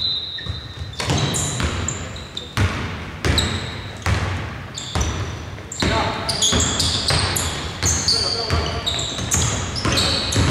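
A basketball bounces with loud, echoing thuds.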